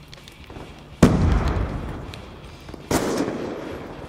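A sniper rifle fires loud, echoing shots.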